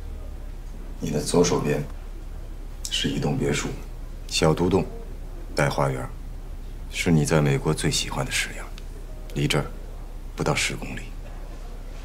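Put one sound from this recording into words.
A man speaks calmly and persuasively, close by.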